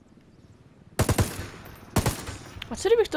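A rifle fires two loud shots.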